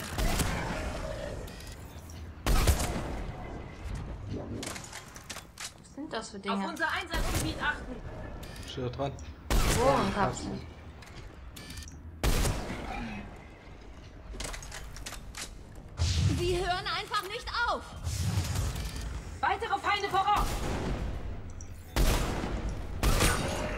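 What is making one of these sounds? Sniper rifle shots crack loudly, one at a time, in short bursts.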